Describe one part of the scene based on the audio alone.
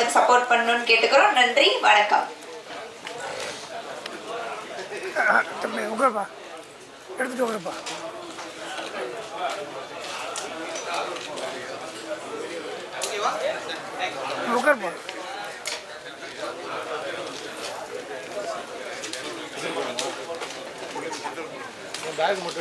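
A crowd of men chatter and call out in a large, echoing hall.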